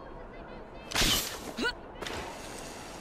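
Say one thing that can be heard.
A rope launcher fires with a sharp crack.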